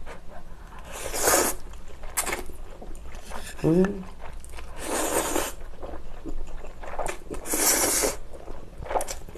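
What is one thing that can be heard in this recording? A young woman slurps noodles loudly, close to a microphone.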